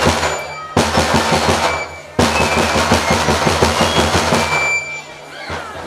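Drums beat in a fast, loud rhythm.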